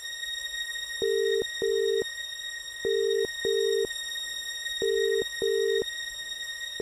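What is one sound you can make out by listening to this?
A phone's ringing tone sounds in short double bursts through the earpiece.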